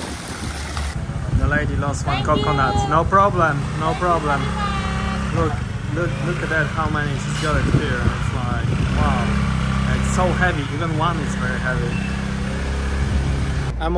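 A scooter engine hums steadily close by.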